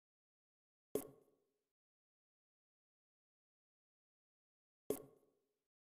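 A ball is struck with a sharp thud.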